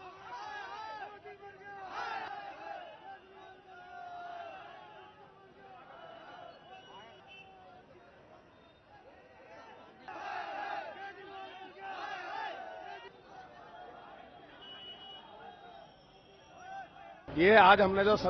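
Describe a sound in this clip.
A crowd of men chants and shouts outdoors.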